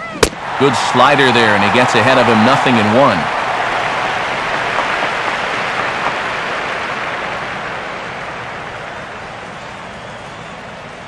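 A crowd cheers loudly, then the cheering slowly fades.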